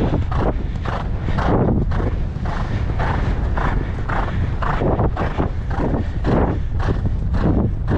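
A horse breathes hard in rhythm with its stride.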